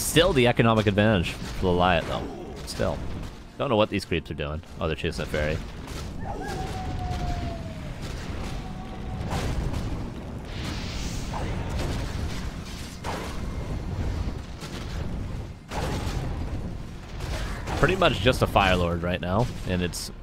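Weapons clash and spells burst in a fast battle.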